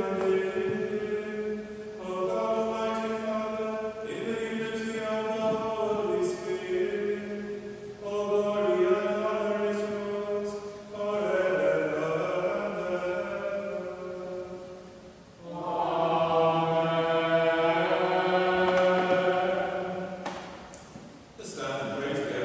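A congregation of men and women sings slow, sustained notes together in a large echoing hall.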